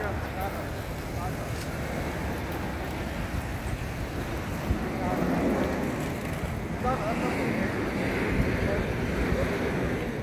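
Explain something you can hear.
Many footsteps patter as a crowd crosses a street.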